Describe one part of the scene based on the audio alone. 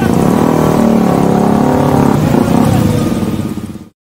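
Another motorcycle rides up nearby.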